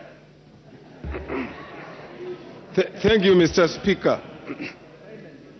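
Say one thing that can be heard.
A man speaks firmly through a microphone in a large echoing hall.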